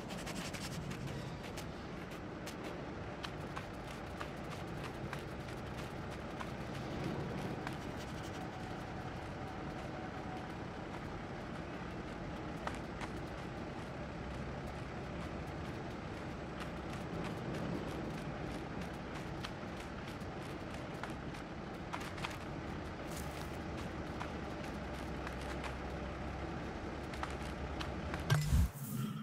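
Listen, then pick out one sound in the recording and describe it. A fox's paws pad and crunch softly on snow.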